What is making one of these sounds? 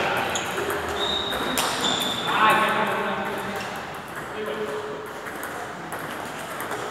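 A table tennis ball clicks back and forth off paddles and a table.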